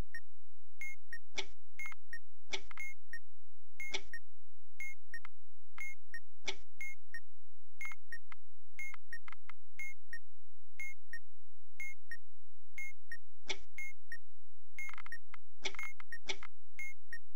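Electronic keypad buttons click and beep as they are pressed.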